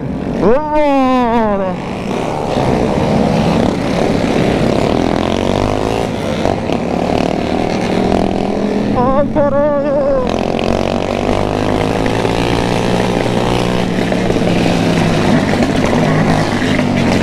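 Several other motorcycles roar along nearby.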